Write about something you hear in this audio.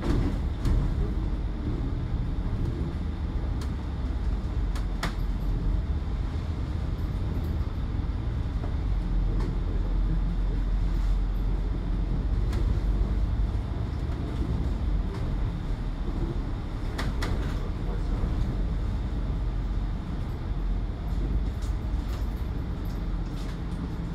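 A bus engine rumbles steadily from inside the bus as it drives along.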